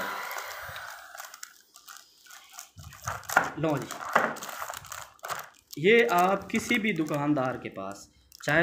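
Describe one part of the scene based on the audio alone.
Plastic wrap crinkles as hands handle packages.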